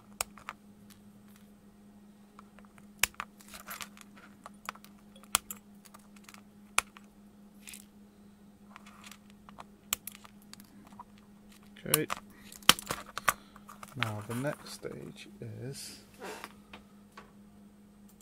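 Small wire cutters snip component leads with sharp clicks.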